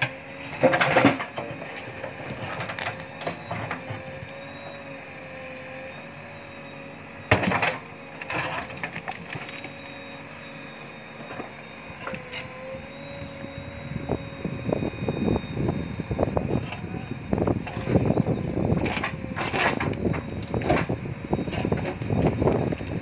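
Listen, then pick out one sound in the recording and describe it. Rocks knock and scrape against a metal bucket.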